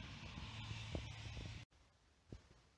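A pickup truck drives past.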